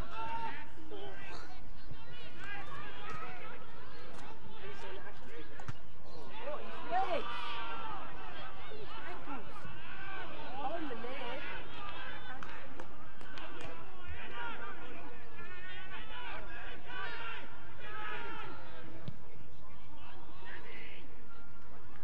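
Men shout and call out across an open field.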